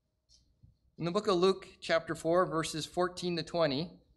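A man speaks calmly and clearly through a microphone.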